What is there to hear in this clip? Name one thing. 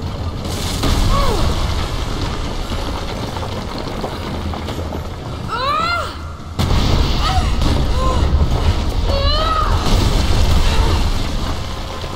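Stone blocks crumble and crash down with a deep rumble.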